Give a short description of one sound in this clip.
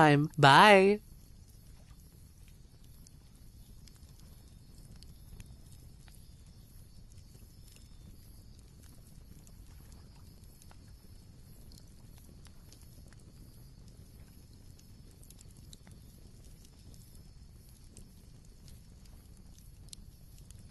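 Burning embers crackle and pop softly.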